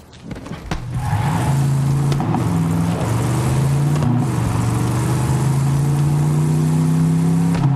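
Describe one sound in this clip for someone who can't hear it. A vehicle engine revs and hums steadily.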